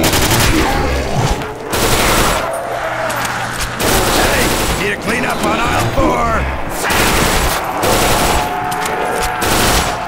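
A submachine gun fires in rapid bursts.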